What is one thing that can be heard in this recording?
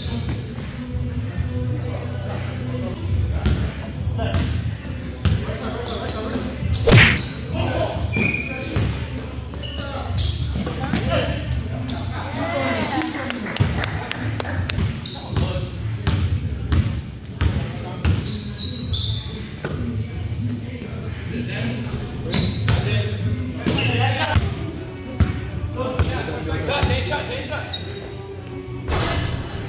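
Sneakers squeak on a court.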